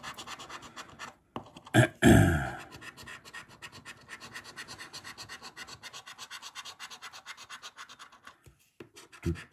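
A coin scratches rapidly across a card.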